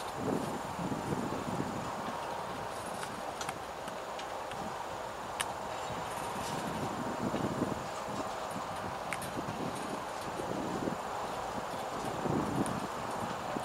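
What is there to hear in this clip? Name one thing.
A long freight train rumbles and rattles steadily past in the distance.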